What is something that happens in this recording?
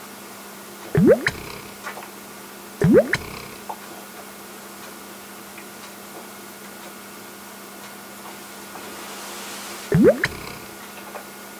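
A man gulps down a drink in loud swallows.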